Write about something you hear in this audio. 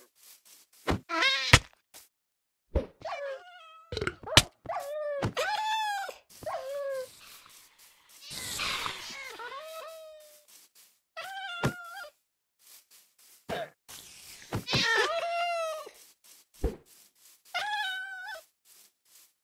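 A cat meows repeatedly, close by.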